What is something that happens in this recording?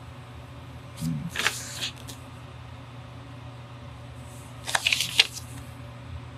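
A pen scratches across paper in short strokes.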